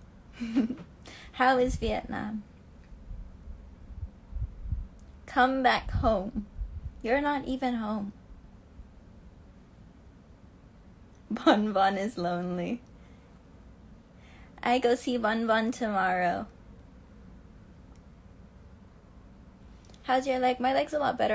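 A young woman talks close to a phone microphone, in short bursts with pauses.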